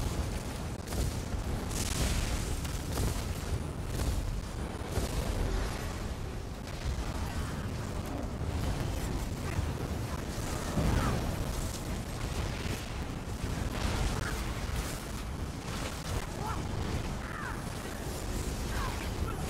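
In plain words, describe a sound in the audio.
Spell blasts and magic effects crackle and boom in a game battle.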